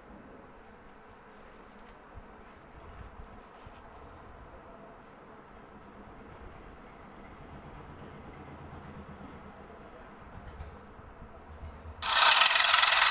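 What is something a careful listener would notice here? A tractor engine rumbles.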